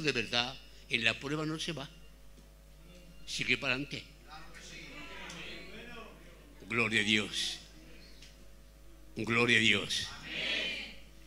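An elderly man speaks into a microphone in bursts, calmly and with pauses.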